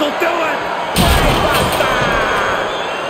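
A wooden table crashes and breaks with a loud thud.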